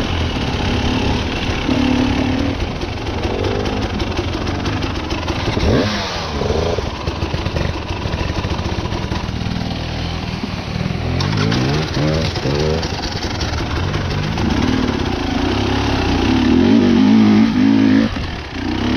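A dirt bike engine revs and idles up close, its pitch rising and falling.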